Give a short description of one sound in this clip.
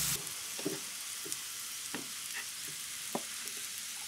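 Vegetable pieces drop into a pot of water.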